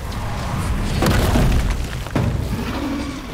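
Magic blasts crackle and boom in a fantasy battle.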